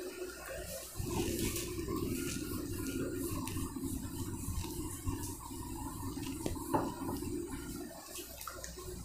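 An eraser rubs across a whiteboard.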